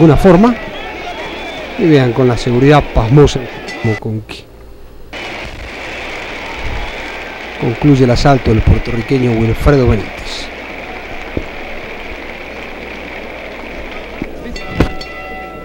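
A large crowd cheers and murmurs in a big arena.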